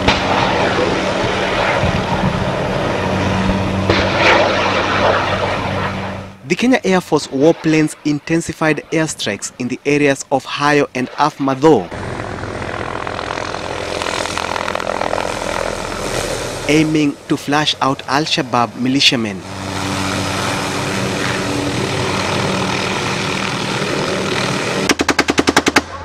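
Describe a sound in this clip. A helicopter's engine and rotor drone steadily overhead.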